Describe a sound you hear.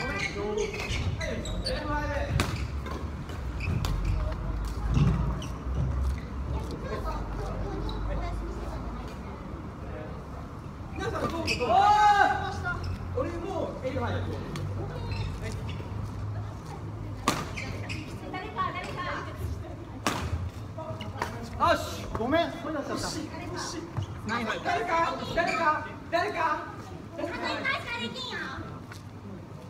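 Sports shoes squeak on a wooden gym floor.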